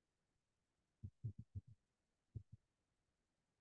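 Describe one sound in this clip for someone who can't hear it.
Keys clack on a computer keyboard.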